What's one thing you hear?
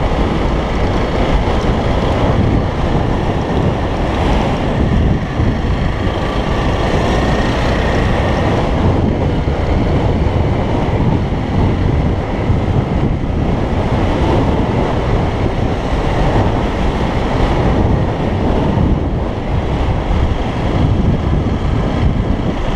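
A motorcycle engine hums steadily as the bike rides over rough ground.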